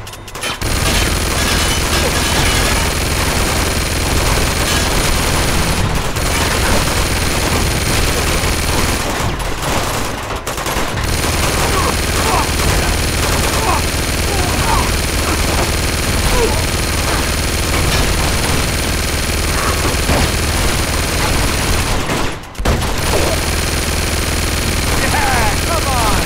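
A mounted machine gun fires in long rapid bursts.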